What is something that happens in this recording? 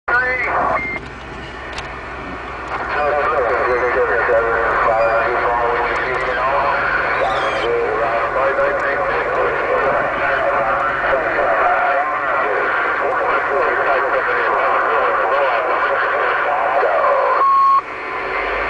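A radio scanner plays garbled voices through a small loudspeaker.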